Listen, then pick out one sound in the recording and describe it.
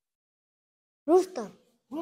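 A young boy answers in a small voice.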